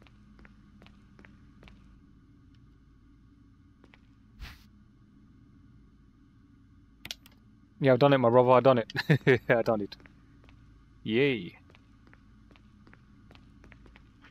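Footsteps tap softly on a hard floor.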